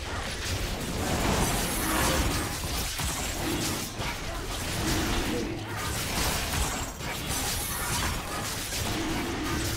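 Fantasy battle sound effects clash and whoosh in quick bursts.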